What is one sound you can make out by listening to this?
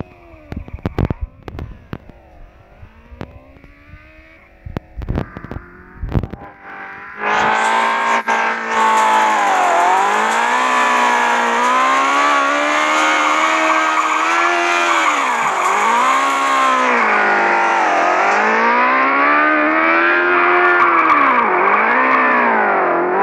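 A game car's tyres screech while drifting.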